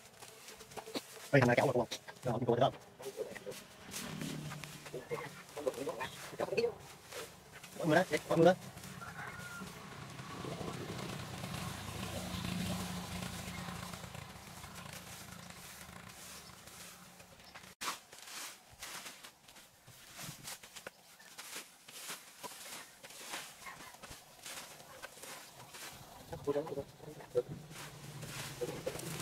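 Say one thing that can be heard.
A rake scrapes and rustles through dry grass and leaves.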